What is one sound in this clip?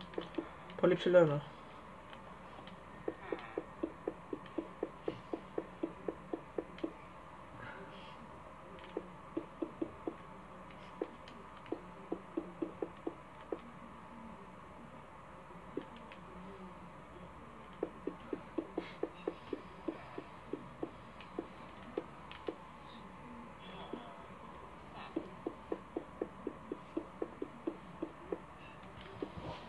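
Quick footsteps tap in short, steady runs.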